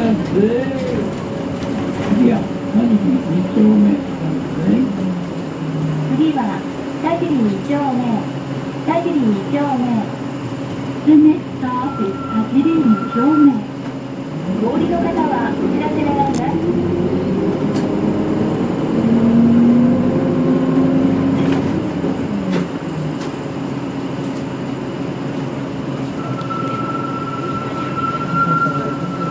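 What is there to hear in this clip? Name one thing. A car engine hums steadily while driving along a street.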